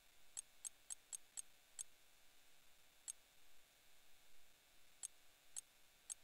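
Short, high electronic menu ticks sound each time a selection moves, in quick bursts and then singly.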